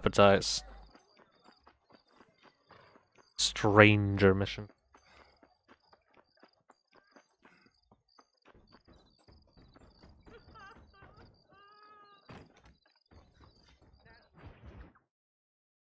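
Footsteps run over dirt and wooden boards.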